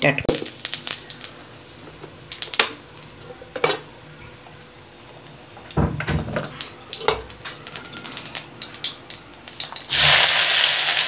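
Seeds crackle softly in hot oil.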